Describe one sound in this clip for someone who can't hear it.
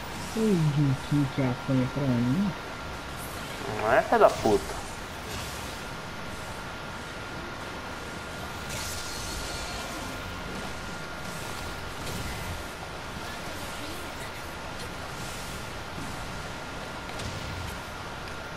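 Blades slash and whoosh through the air in quick bursts.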